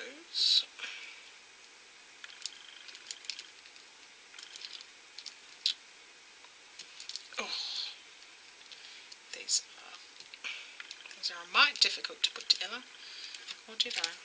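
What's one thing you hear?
Small plastic toy parts click and rattle as they are handled up close.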